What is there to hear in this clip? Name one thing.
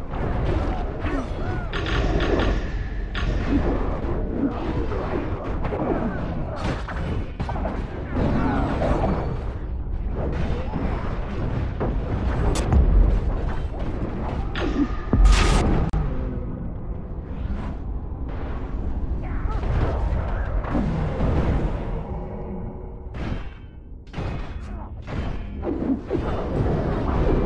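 Game weapons clash and strike repeatedly.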